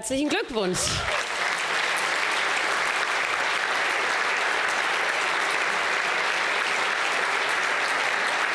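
A large audience applauds loudly and steadily.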